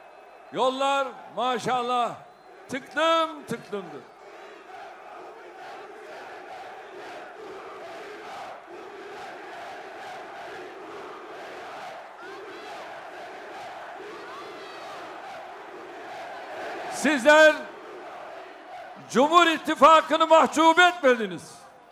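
A large crowd chants loudly in unison outdoors.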